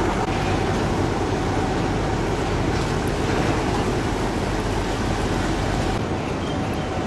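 A truck engine idles nearby with a low rumble.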